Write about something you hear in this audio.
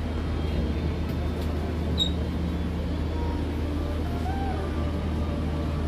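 An aircraft cabin hums with a steady low drone.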